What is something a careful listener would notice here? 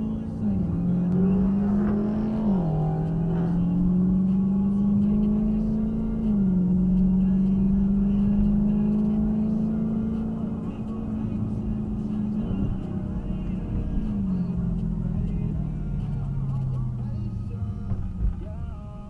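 Tyres roll on the road with a low rumble.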